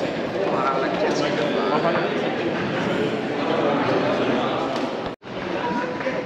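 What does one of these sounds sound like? A crowd of men and women chatter in a large, echoing hall.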